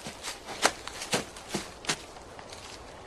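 Footsteps crunch quickly over dry leaves and twigs.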